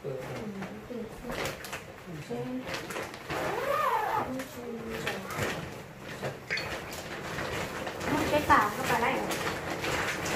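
Large plastic bags rustle as they are moved.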